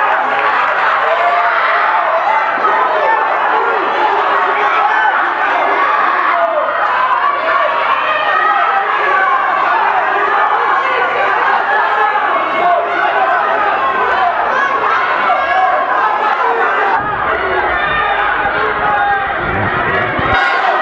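A large crowd shouts and cheers loudly all around.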